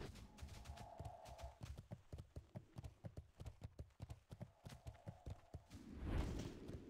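Footsteps thud quickly and evenly on the ground.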